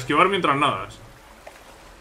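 Water splashes as a swimmer moves through it.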